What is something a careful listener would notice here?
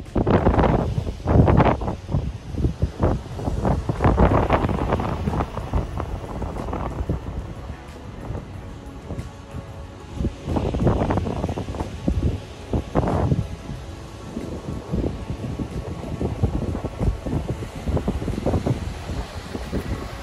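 A car engine hums as the car drives closer over soft sand.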